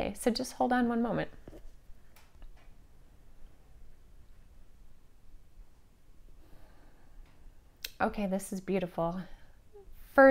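A woman speaks calmly and close into a microphone, with long pauses.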